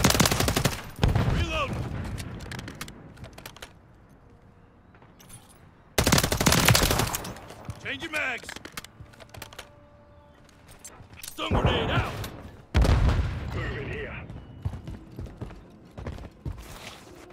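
A rifle magazine clicks and clacks as it is reloaded.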